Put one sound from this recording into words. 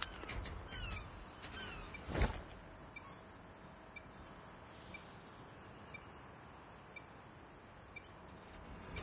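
A short electronic beep ticks once every second, counting down.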